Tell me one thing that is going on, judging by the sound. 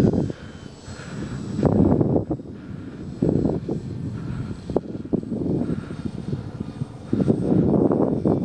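An airplane drones far overhead.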